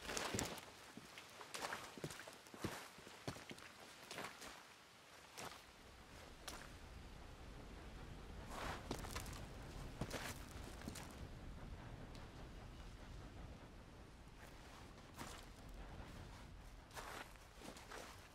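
Footsteps crunch on gravel and wooden ties.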